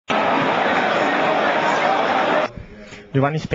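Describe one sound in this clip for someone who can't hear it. A stadium crowd roars in a large open space.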